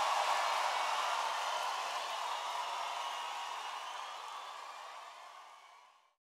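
A large crowd cheers and claps in a big echoing hall, slowly fading.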